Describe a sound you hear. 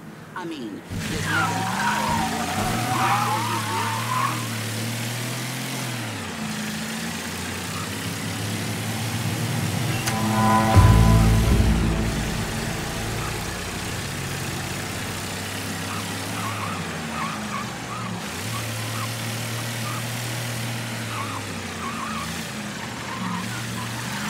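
A car engine rumbles and revs as a car drives along.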